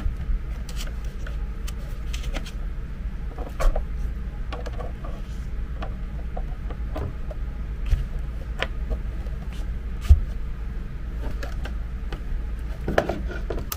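Plastic parts click and knock as a device is handled.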